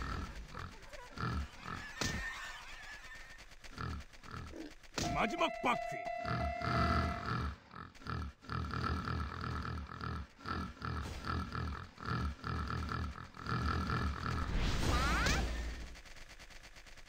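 Cartoon karts whoosh and zip with bright sound effects.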